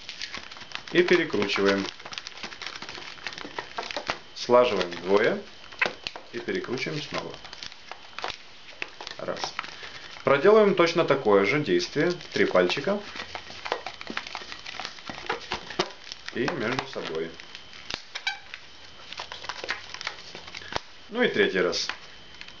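Rubber balloons rub and rustle against each other.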